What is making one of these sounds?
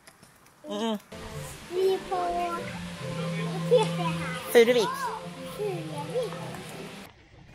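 A young boy talks and laughs.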